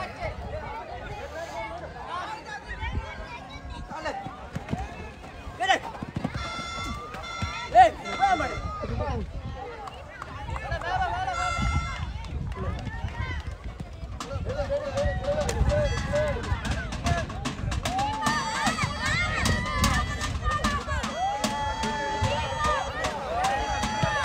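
Men shout across an outdoor football pitch.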